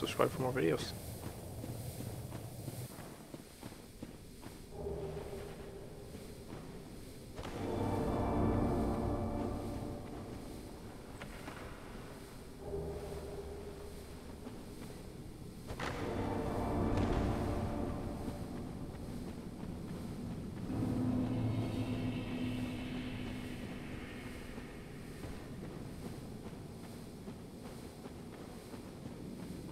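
Armoured footsteps crunch on a gravelly path.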